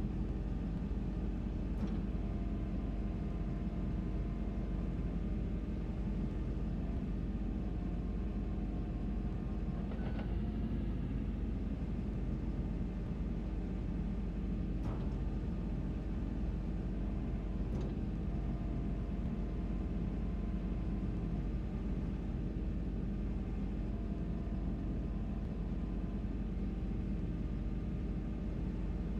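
A diesel engine rumbles steadily and deeply.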